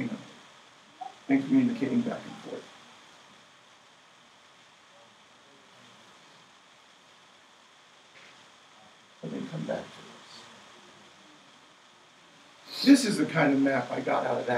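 A man speaks calmly in a quiet room, in short bursts with pauses.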